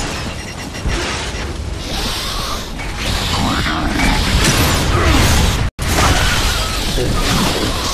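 Flames roar and explosions boom.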